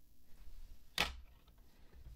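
A hard plastic case taps down on a wooden tabletop.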